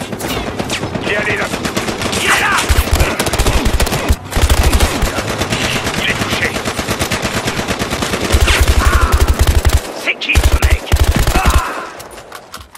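A rifle fires in rapid bursts of loud gunshots.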